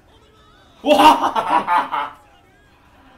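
A young man laughs loudly close to a microphone.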